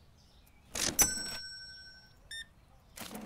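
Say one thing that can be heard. A cash register drawer opens with a bright ringing chime.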